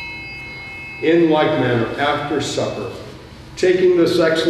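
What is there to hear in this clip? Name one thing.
An elderly man speaks slowly and solemnly in a large echoing hall.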